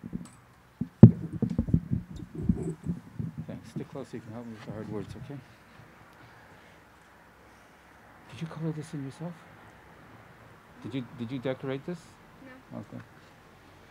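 An elderly man speaks in a low, calm voice nearby.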